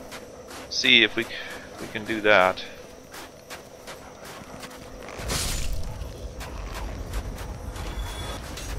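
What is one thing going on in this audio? Footsteps tap on stone at a steady walking pace.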